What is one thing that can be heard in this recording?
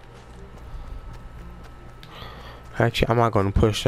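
Footsteps run on grass.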